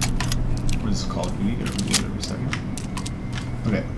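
A gun reloads with a metallic click.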